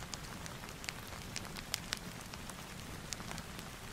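A book page is turned with a soft rustle.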